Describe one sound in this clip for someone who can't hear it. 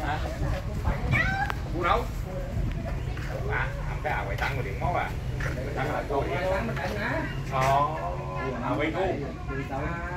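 Several men talk casually nearby, outdoors.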